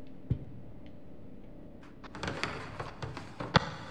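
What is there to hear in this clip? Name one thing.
A metal drawer slides open.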